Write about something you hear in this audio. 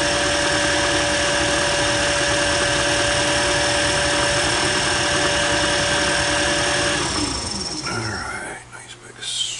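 A metal lathe runs with a loud, steady whine, then winds down and stops.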